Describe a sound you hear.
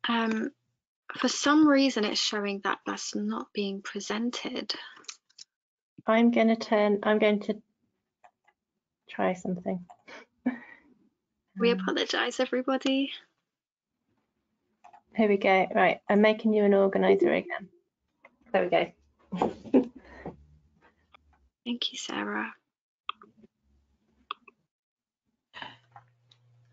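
A young woman speaks calmly and warmly through a headset microphone on an online call.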